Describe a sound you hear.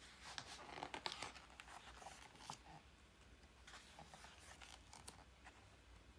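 Paper pages rustle and flap as a book's pages are turned.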